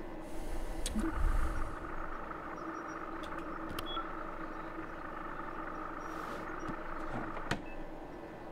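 An electronic panel gives off a steady high tone.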